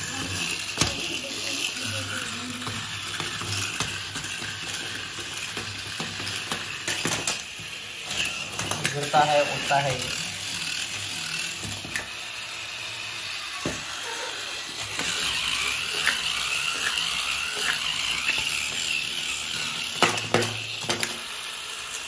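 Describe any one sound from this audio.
Plastic parts clatter and knock against a hard floor.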